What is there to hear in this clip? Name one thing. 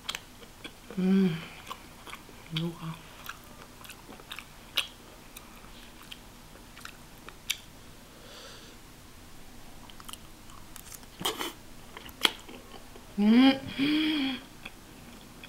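A young woman hums briefly with her mouth closed.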